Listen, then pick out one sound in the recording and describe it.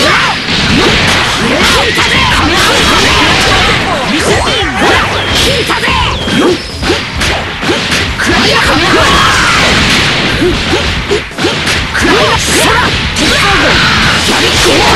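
Punches and energy blasts crash and boom in quick succession.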